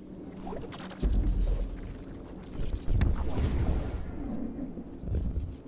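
Heavy footsteps thud and scrape.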